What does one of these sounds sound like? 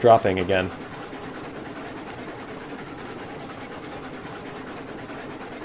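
A steam locomotive chugs steadily along the track.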